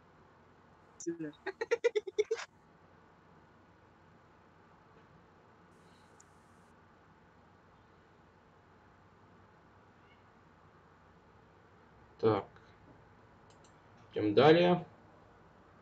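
A man speaks briefly and calmly into a microphone close by.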